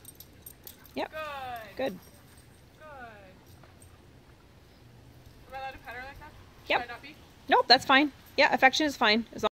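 A dog whines and yelps excitedly.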